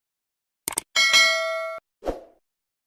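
A bell chimes brightly and stops short.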